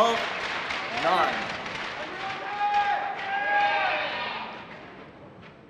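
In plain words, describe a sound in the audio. A crowd cheers and shouts in a large indoor arena.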